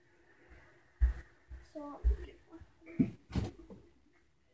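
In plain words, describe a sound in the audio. A child's footsteps thump on the floor nearby.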